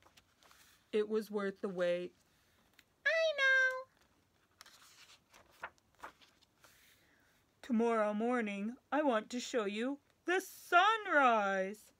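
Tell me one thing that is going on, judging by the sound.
A young woman reads aloud expressively, close to the microphone.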